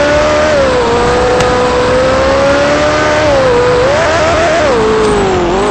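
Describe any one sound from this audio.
A game car engine hums loudly, its pitch rising and falling as the car speeds up and slows down.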